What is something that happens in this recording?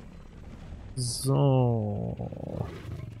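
A large creature lets out a falling roar.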